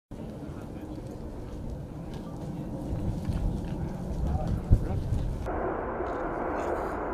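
Jet engines roar loudly as a large plane passes low.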